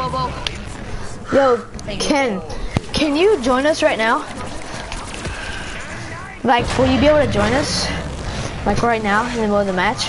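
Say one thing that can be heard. A young boy shouts excitedly into a nearby microphone.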